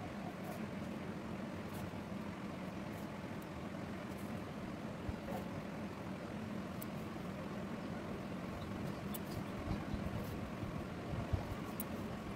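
Thread rustles as it is pulled through coarse cloth.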